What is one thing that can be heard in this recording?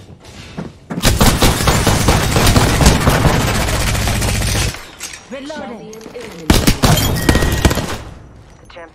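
An automatic rifle fires rapid bursts.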